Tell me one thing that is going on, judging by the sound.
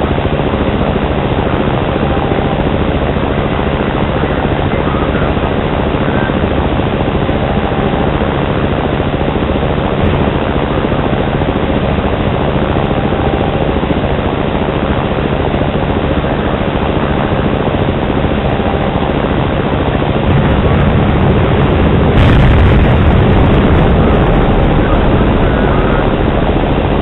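A helicopter engine drones steadily with whirring rotor blades.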